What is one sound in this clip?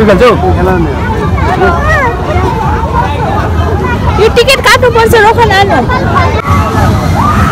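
Children and adults chatter nearby outdoors.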